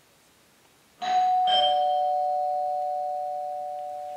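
A phone chimes with a ringing tone that slowly fades.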